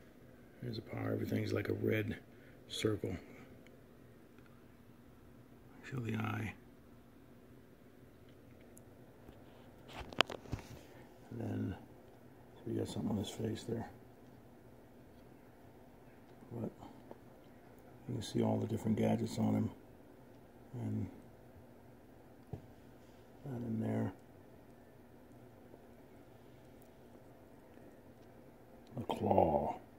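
A middle-aged man talks calmly and close to the microphone, in short bursts with pauses.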